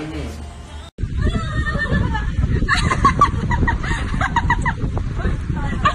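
Young women laugh close by.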